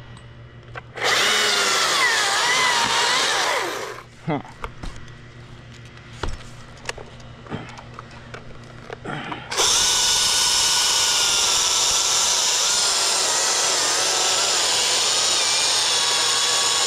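A chainsaw roars loudly as it cuts through wood.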